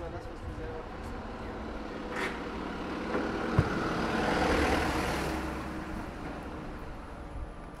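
A lorry engine rumbles close by and then fades.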